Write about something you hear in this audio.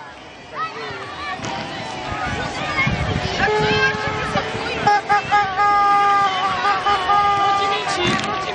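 Young children shout and cheer outdoors.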